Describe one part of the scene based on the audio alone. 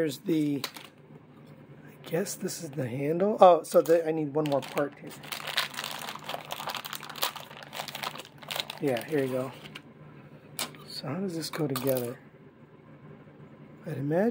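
Small plastic toy parts click and clatter as they are handled.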